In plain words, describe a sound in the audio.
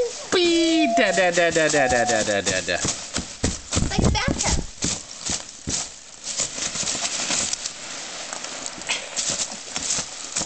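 Packing peanuts rustle and squeak as hands scoop and toss them.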